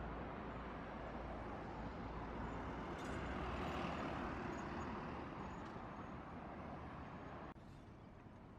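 A car drives past close by on the road.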